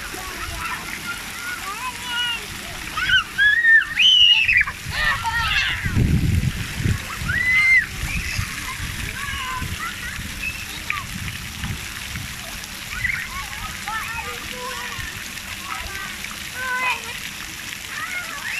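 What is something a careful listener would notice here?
Water sprays and splashes from jets onto the ground.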